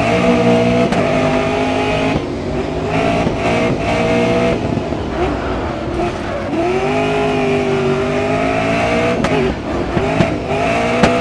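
A racing car engine roars loudly, its pitch rising and falling with gear changes.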